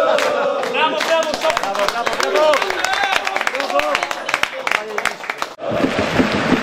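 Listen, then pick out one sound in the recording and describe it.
Men clap their hands rapidly.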